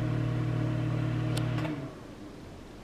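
A microwave oven hums steadily and then stops.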